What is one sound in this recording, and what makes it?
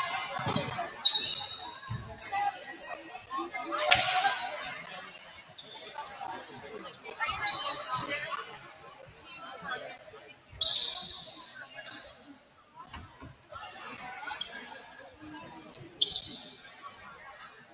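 A volleyball is struck with loud smacks that echo in a large hall.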